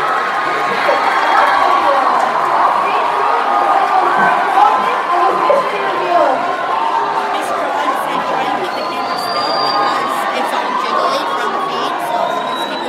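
A large audience chatters in a big echoing hall.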